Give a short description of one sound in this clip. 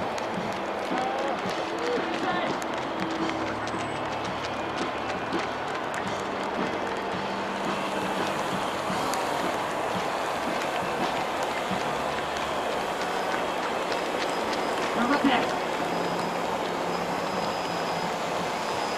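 Runners' footsteps patter on the road.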